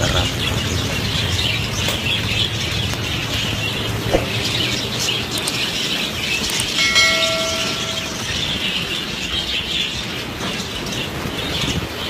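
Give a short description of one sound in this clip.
Budgerigars flutter their wings in flight.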